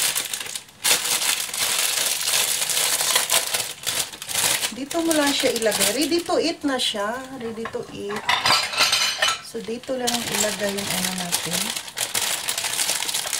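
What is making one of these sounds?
A plastic wrapper crinkles and rustles in someone's hands.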